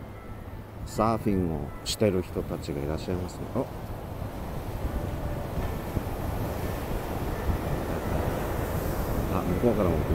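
Ocean waves wash and break steadily outdoors.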